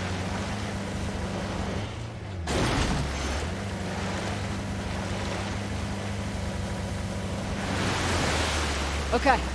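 An off-road vehicle's engine hums steadily as it drives.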